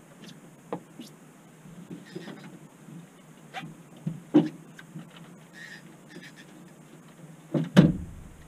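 Knocks and thumps sound on a boat's deck.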